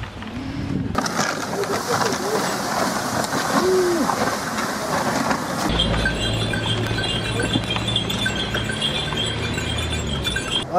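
A horse-drawn sleigh glides over snow.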